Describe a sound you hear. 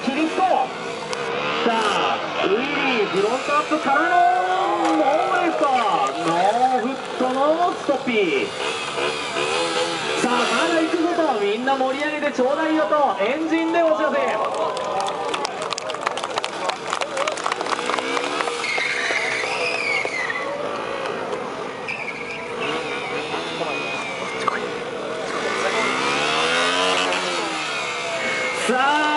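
A motorcycle engine revs up and down repeatedly, close by.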